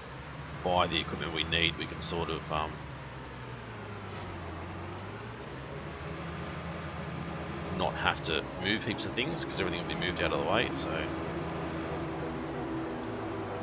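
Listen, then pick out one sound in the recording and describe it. A tractor engine hums steadily, rising and falling as it drives.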